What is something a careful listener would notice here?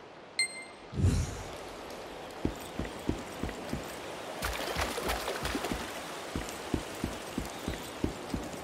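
Heavy footsteps thud on stone at a steady pace.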